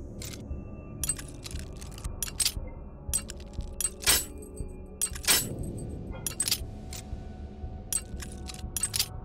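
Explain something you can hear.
Small metal lock pins click and tap sharply.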